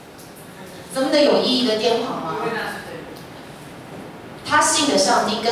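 A woman speaks calmly into a microphone over loudspeakers in a hall that echoes.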